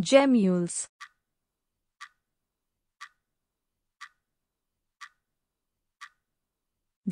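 A timer ticks once a second.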